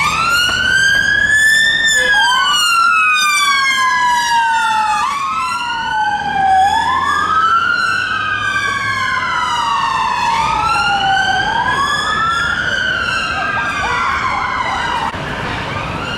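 An ambulance siren wails loudly, rising and falling in long sweeps.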